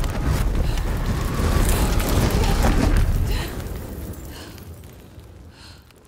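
A huge burst of flame roars.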